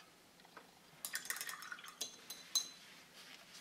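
A small plastic figure clicks and taps as it is set down on a hard surface.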